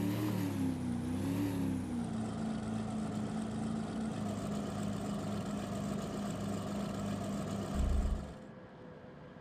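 A motorboat engine hums steadily, then cuts off.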